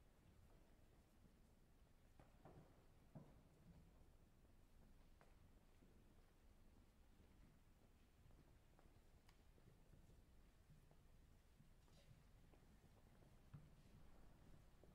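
Footsteps shuffle softly on a stone floor in a large echoing hall.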